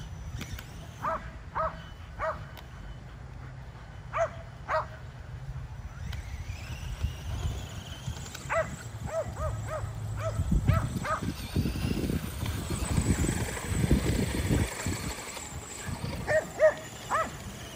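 Dogs bark and yip in short bursts.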